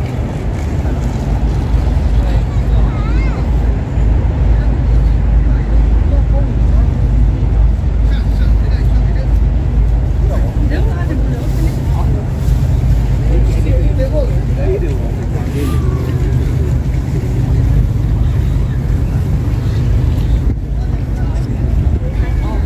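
Rain patters on wet pavement.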